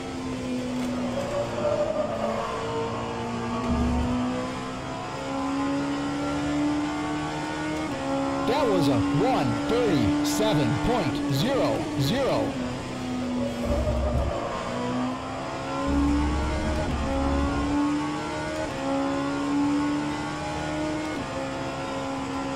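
A racing car engine roars steadily, rising in pitch and dropping with each gear change.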